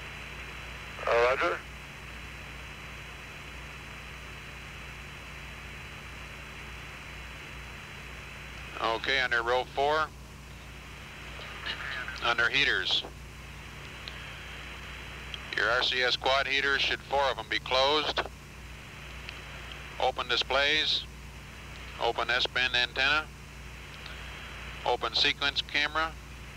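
A small propeller plane's engine drones steadily overhead.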